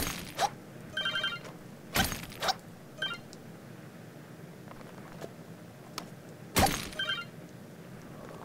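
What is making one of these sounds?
Rock shatters and crumbles.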